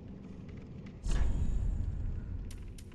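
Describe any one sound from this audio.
A game menu opens with a soft whooshing sound.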